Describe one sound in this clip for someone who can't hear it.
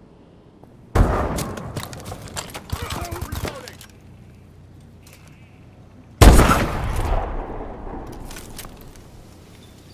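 Gunshots ring out loudly with echoing tails.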